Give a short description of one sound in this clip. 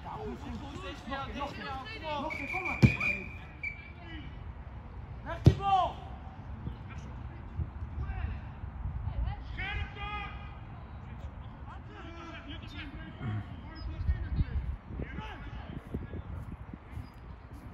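Young players shout to each other across an open pitch.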